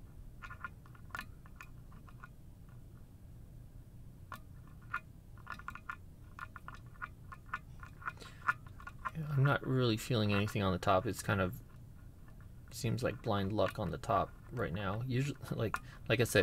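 Small metal picks click and scrape inside a lock.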